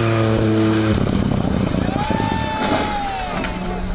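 Gravel and mud spray from tyres.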